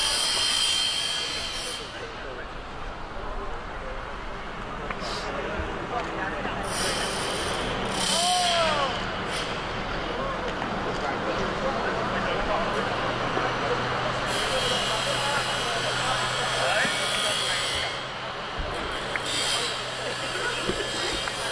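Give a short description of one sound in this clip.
Young men call out and chatter faintly across an open outdoor field.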